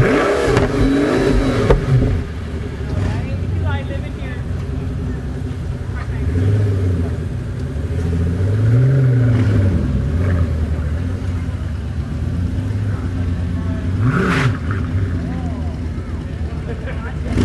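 A sports car engine idles with a deep rumble and revs up now and then.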